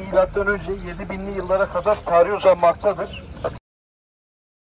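A woman talks with animation nearby, outdoors.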